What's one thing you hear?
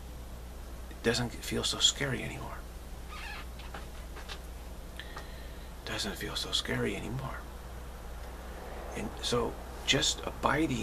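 A middle-aged man speaks calmly and close to a microphone, pausing between phrases.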